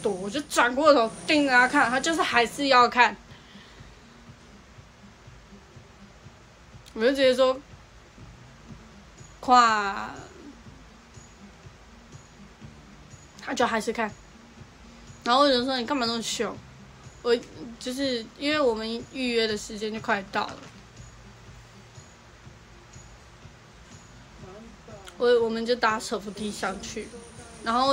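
A young woman talks close to a microphone, in short animated bursts with pauses.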